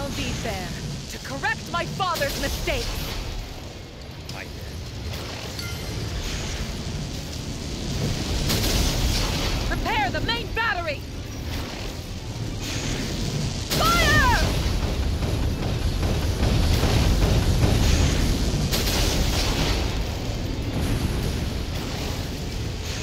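Tank cannons fire with heavy booming blasts.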